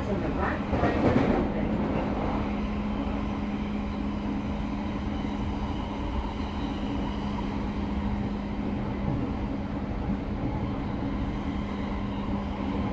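A subway train rumbles steadily through a tunnel with a low hum.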